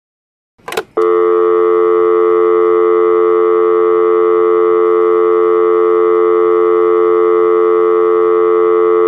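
A radio sounds a loud, steady droning tone.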